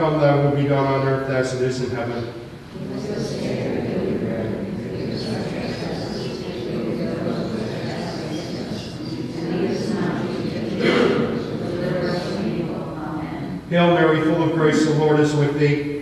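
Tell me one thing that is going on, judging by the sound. An elderly man chants slowly through a microphone in an echoing hall.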